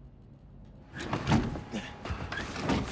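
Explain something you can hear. A window is pushed open with a thud.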